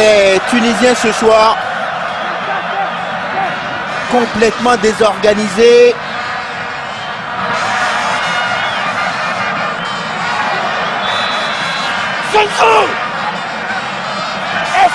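A large crowd cheers and murmurs steadily outdoors.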